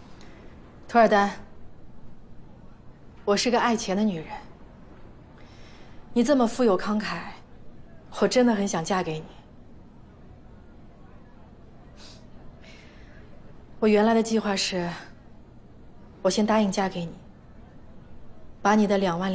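A young woman speaks calmly and sweetly nearby.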